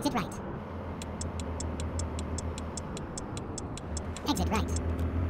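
A truck's indicator ticks rapidly.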